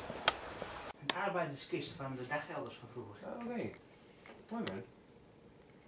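A man speaks quietly indoors.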